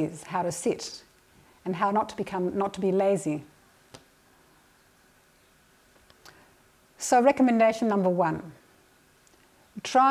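A middle-aged woman speaks calmly into a microphone, with pauses.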